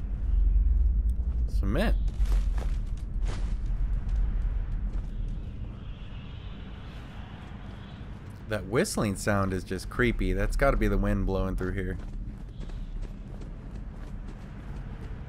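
Footsteps crunch slowly over rubble.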